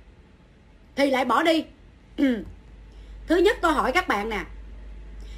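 A woman speaks calmly and close to the microphone, in short phrases.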